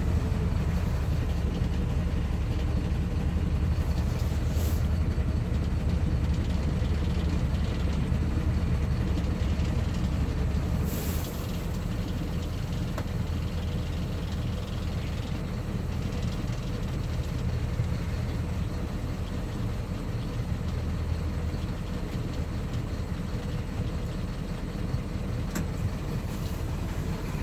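A bus engine rumbles low and steady, then settles to a quieter idle.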